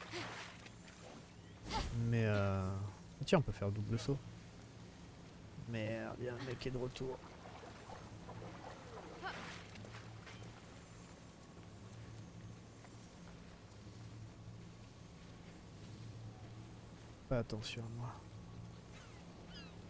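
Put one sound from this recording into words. A magical orb hums steadily.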